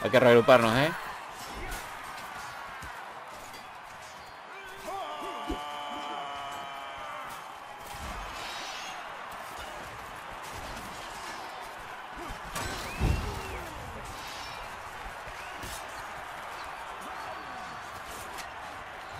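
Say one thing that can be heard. Fighters shout and scream in battle.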